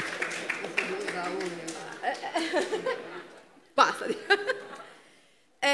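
A middle-aged woman laughs warmly near a microphone.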